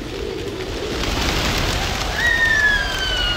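A flock of pigeons takes off with a loud flutter of wings.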